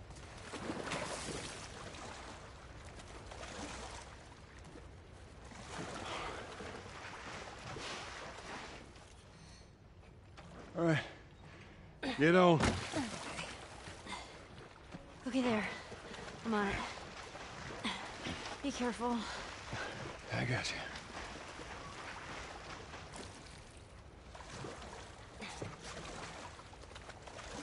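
Water splashes and sloshes as a man wades through it.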